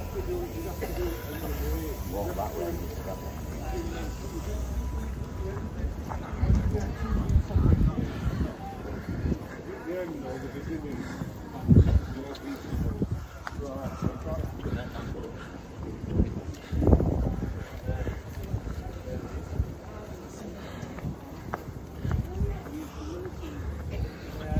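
Men talk in a walking crowd outdoors.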